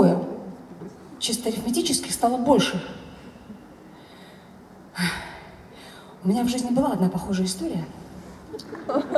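A woman speaks calmly into a microphone over a loudspeaker, in a large echoing hall.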